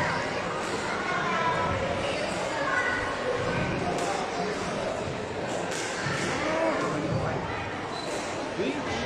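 A squash ball smacks sharply against the walls, echoing in a large hard-walled court.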